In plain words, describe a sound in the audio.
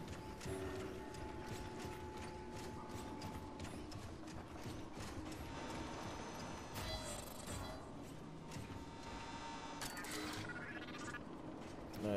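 Heavy metal footsteps clank steadily on a hard floor.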